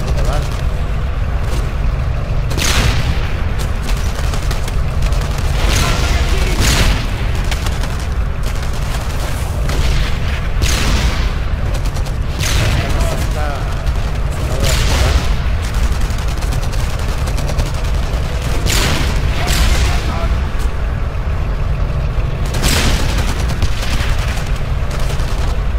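A low battle rumble drones steadily throughout.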